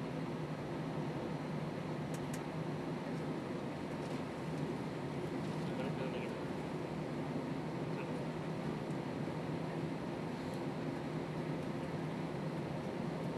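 Jet engines hum and roar steadily from inside an airliner cabin.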